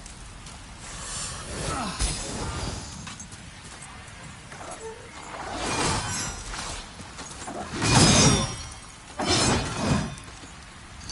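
A heavy sword whooshes through the air in repeated swings.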